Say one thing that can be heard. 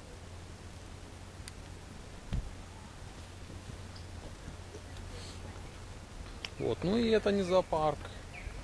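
Wind rumbles softly outdoors.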